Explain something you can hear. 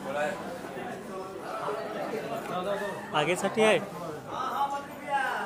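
A crowd of men talk and call out loudly close by.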